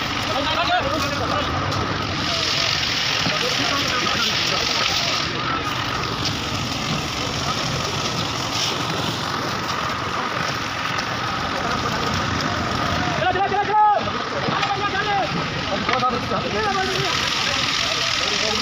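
A shovel scrapes through wet concrete.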